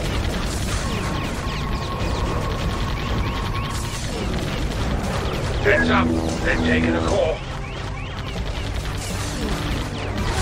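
Laser turrets fire with electronic zaps.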